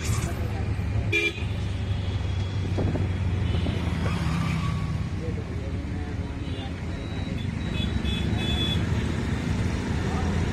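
An engine hums steadily as a vehicle drives along.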